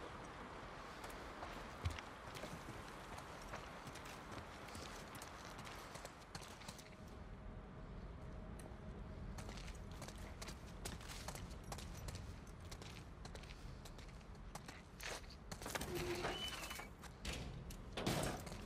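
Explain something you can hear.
Slow footsteps tread across a hard, gritty floor.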